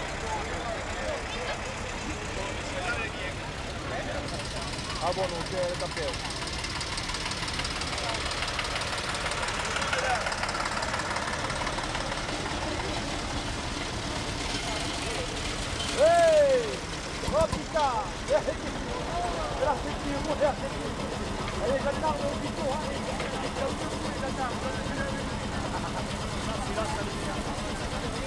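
A crowd of men and women chatters nearby outdoors.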